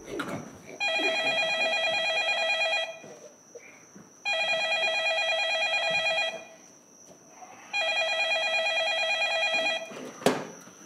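A telephone rings in repeated bursts.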